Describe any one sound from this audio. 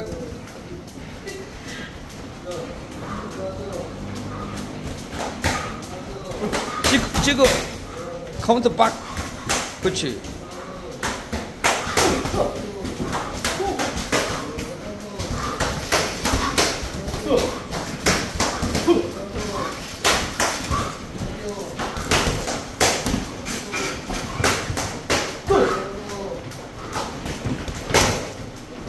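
Sneakers shuffle and squeak on a padded floor.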